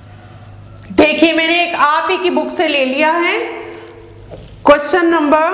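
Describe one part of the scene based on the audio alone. A woman speaks calmly, explaining.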